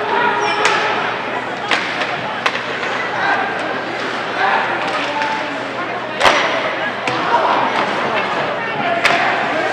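Hockey sticks clack against a puck and each other on ice.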